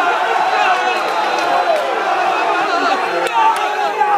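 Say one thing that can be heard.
A man nearby shouts and cheers with excitement.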